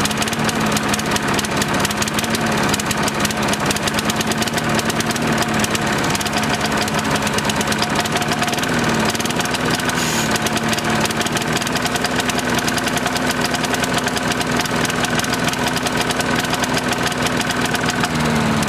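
A small petrol lawn mower engine runs loudly close by, sputtering rapidly.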